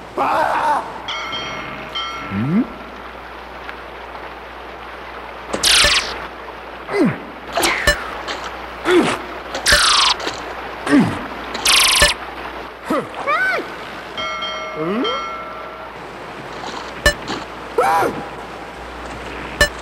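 Rushing water churns and splashes around a small boat.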